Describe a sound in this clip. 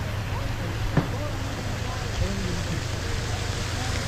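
A large flag flaps and snaps loudly in the wind.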